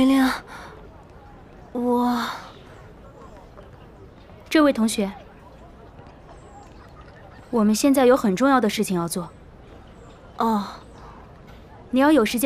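A young woman speaks close by in short, startled bursts.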